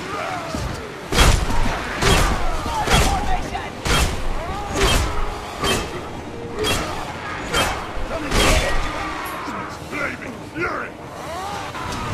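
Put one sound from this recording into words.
Heavy blows thud and clang as two fighters brawl.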